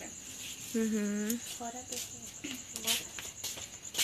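A young woman speaks close by.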